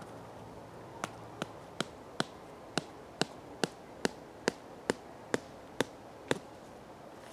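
A stake is knocked into the ground with sharp, evenly spaced taps.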